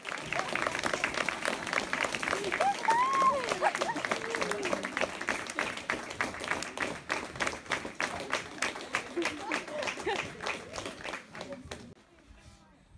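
A crowd applauds loudly in a room.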